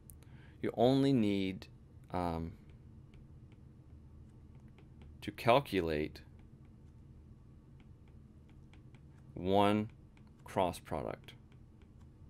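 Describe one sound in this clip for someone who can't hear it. A young man speaks calmly into a close microphone, in short phrases.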